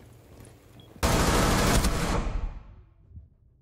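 A rifle fires a rapid, loud burst.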